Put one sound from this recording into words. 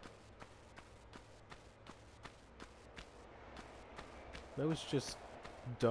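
Footsteps slap quickly on stone.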